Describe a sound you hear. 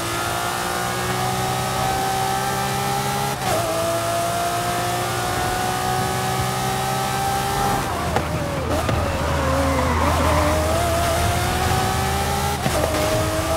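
A V12 sports car engine accelerates at full throttle.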